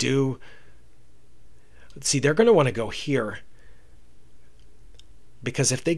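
A man speaks calmly and closely into a microphone, in short bursts.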